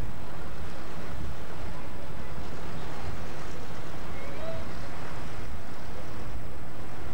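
A busy street hums with traffic and distant crowd noise outdoors.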